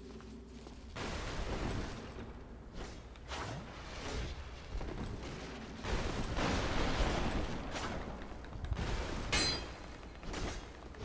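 Swords clash and clang against armour.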